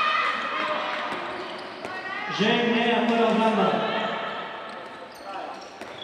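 A handball bounces on the floor.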